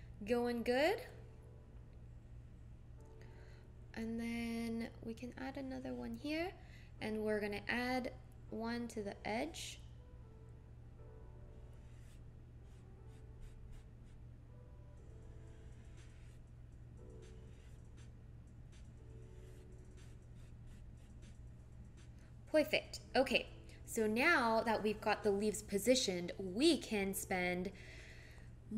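A young woman talks calmly and casually, close to a microphone.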